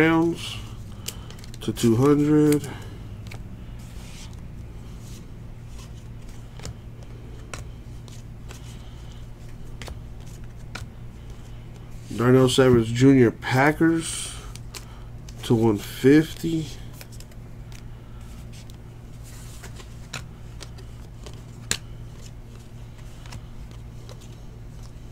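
Trading cards flick and rustle as they are sorted by hand.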